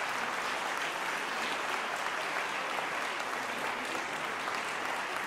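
A mixed choir of men and women sings together in a large echoing hall.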